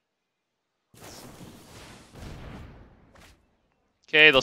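A digital card game plays a whooshing spell effect.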